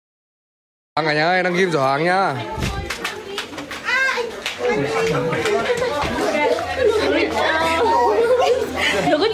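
Young women chatter and laugh nearby.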